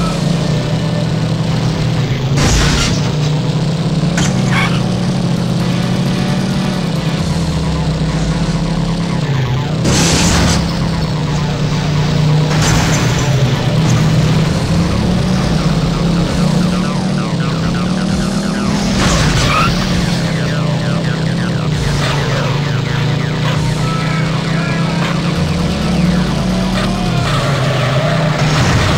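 A race car engine drones steadily, shifting pitch as it speeds up and slows down.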